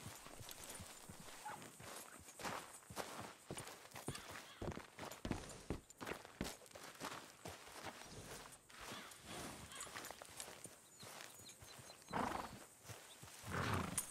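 Horse hooves clop slowly on gravel and grass.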